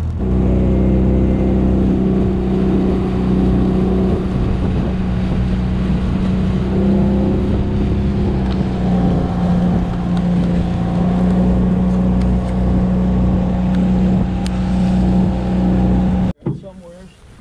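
An outboard motor drones steadily as a boat speeds along.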